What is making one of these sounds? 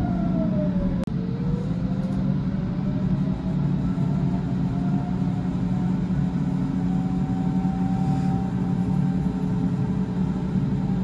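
An electric train's motor whines, gliding slowly in pitch.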